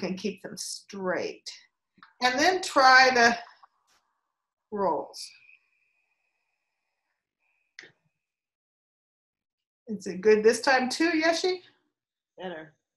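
An elderly woman speaks calmly and close by, in short phrases with pauses.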